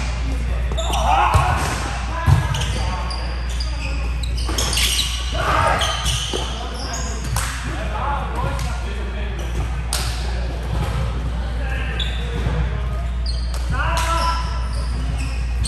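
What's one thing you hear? Young men call out to each other in a large echoing gym.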